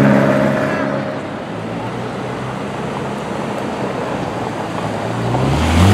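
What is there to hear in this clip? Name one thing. A convertible's engine rumbles as it pulls away.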